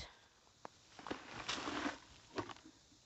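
Loose dirt pours from a bucket onto the ground.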